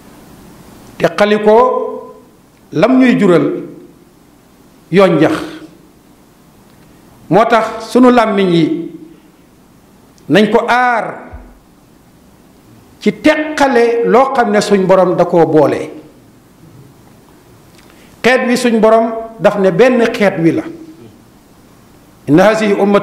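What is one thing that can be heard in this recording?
An elderly man preaches into a microphone in loud, drawn-out chanted phrases with pauses between them.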